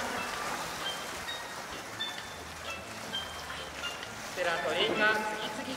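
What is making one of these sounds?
Water splashes and laps as an orca surfaces in a pool.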